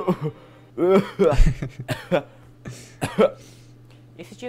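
A young man groans loudly up close.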